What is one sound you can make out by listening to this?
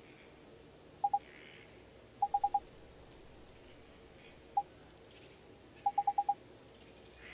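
Short electronic blips chirp in quick bursts.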